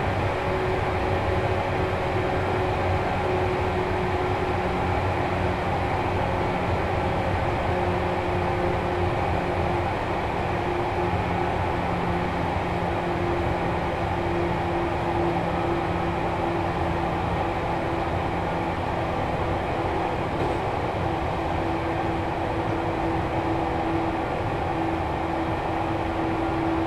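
An electric train hums and rumbles steadily as it runs.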